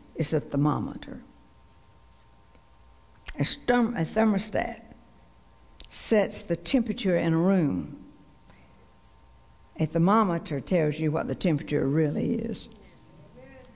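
A middle-aged woman speaks slowly and earnestly through a microphone, pausing between phrases.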